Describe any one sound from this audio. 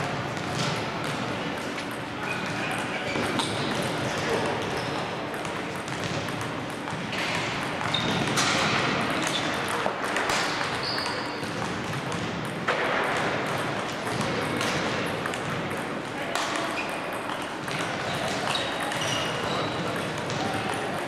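Table tennis balls click back and forth on paddles and tables in a large echoing hall.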